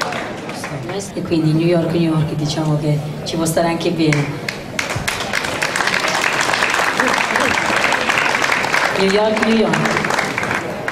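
A woman speaks through a microphone and loudspeakers.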